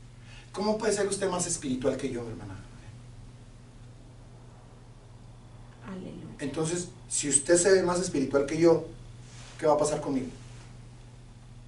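A middle-aged man speaks calmly and with expression into a nearby microphone, in short bursts with pauses.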